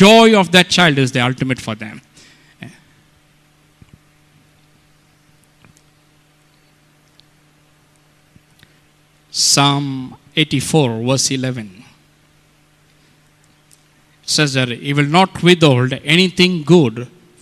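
A middle-aged man speaks with feeling into a microphone, heard through loudspeakers, pausing between phrases.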